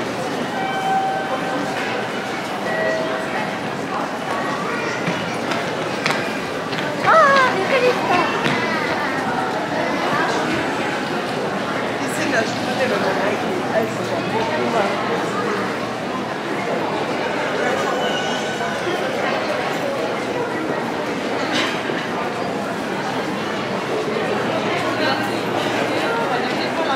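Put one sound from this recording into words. Footsteps shuffle on a hard floor.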